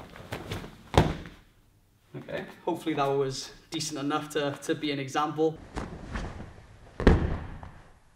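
Feet thump on a mat.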